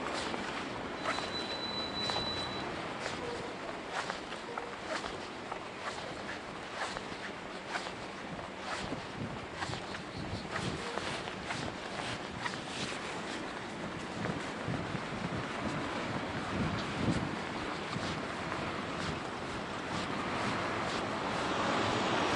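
A bicycle rattles and clicks over a bumpy path.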